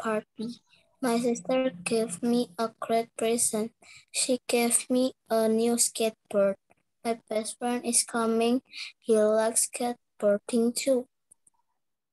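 A young woman speaks clearly and slowly over an online call.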